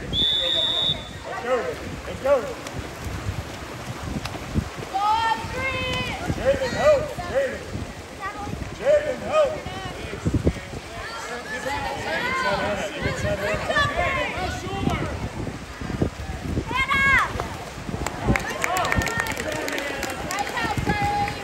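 Players shout and call to each other across the water outdoors.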